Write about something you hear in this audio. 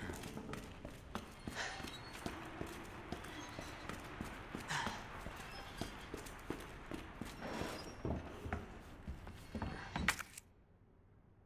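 Footsteps thud on wooden stairs and floorboards.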